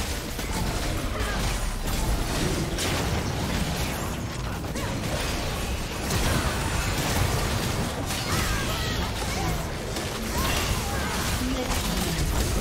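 Magic spells crackle and boom in a busy fantasy battle.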